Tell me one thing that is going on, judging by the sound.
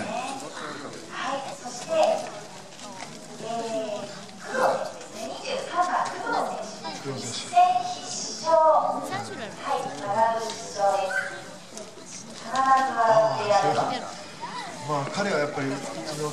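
A young woman talks with animation through a microphone over a loudspeaker.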